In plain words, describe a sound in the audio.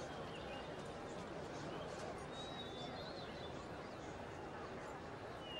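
A crowd of men murmurs quietly outdoors.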